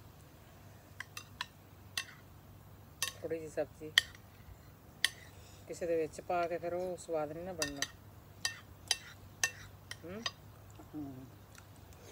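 Spoons clink and scrape against plates.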